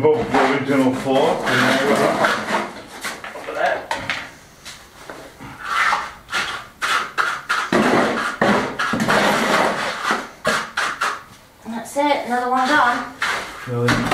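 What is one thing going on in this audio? Rubble and broken tiles clatter into a plastic bucket.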